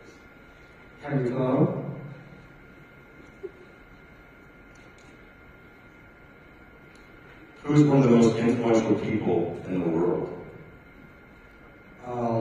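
A man speaks calmly through a microphone, announcing.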